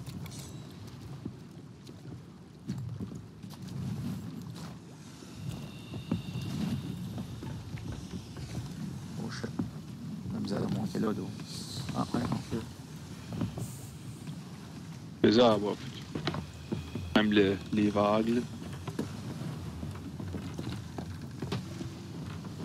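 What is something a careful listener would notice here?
Waves lap gently against a shore.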